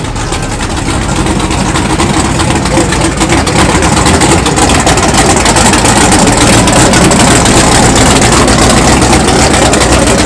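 A loud car engine rumbles and revs as the car rolls slowly past.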